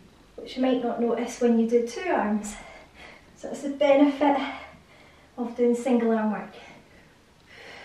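A young woman talks close to the microphone.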